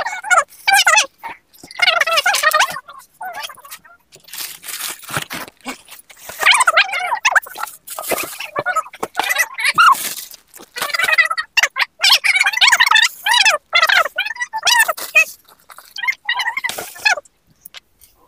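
A young woman talks with animation close by.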